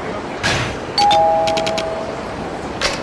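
A short electronic chime sounds as a menu choice is made.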